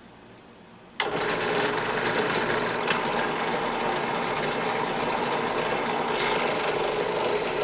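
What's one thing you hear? A drill press motor whirs steadily.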